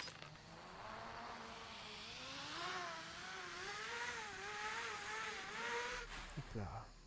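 A pulley whirs and whines as it slides along a cable, rising in pitch.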